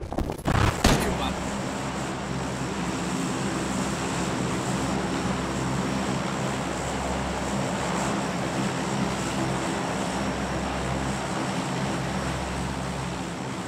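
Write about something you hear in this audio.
Propeller engines of a large plane drone steadily and loudly.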